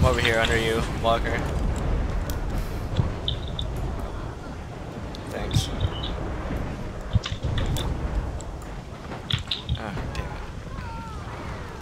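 Magic spells crackle and zap with sharp chimes.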